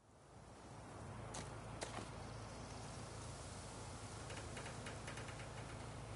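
A horse's hooves plod slowly over grass and pavement.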